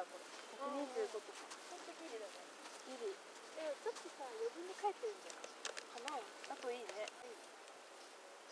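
Young women chat casually outdoors.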